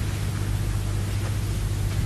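Footsteps cross a room.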